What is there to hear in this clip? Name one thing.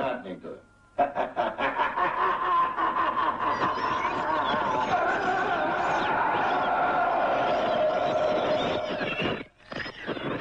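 An elderly man laughs loudly and heartily.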